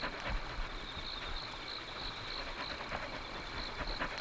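A dog pants quickly close by.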